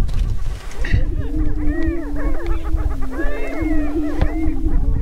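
A grouse makes low, hollow booming hoots.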